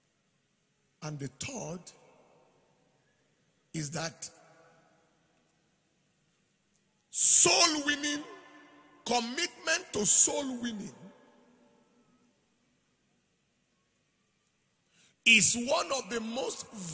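A man preaches with animation into a microphone, in bursts with pauses, over a loudspeaker in a large echoing hall.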